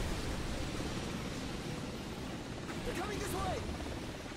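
A helicopter's rotor drones overhead.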